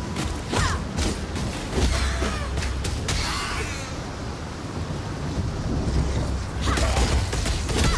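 Magic blasts crackle and strike in a fight.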